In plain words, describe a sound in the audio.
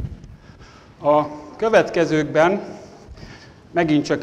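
A man speaks with animation to an audience in a large echoing hall.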